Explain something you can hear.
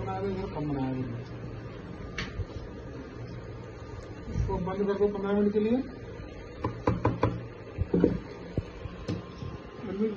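A spatula scrapes and knocks against a frying pan.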